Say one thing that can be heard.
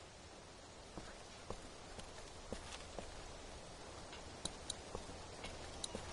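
Footsteps walk on pavement outdoors.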